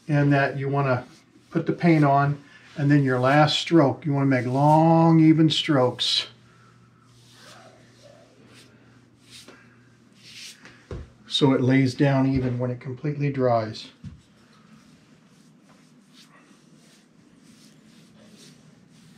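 A paintbrush swishes softly along wooden trim.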